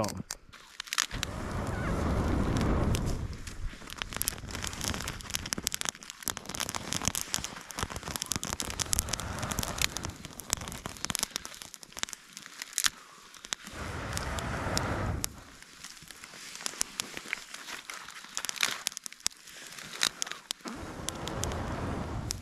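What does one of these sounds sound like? Wind blows in gusts outdoors.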